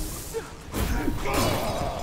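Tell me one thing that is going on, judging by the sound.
Electric bolts crackle and buzz.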